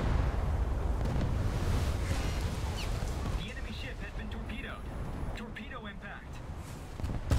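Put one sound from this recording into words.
Shells crash into water with heavy booms.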